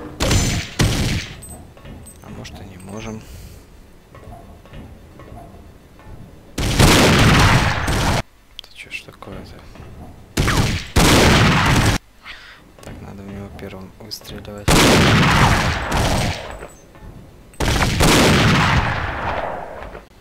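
A submachine gun fires in loud, echoing bursts.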